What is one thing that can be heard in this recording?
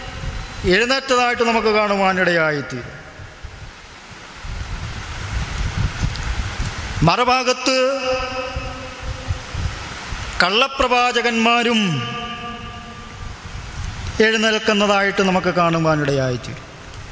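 A man sings slowly into a microphone, in long drawn-out phrases with pauses between them.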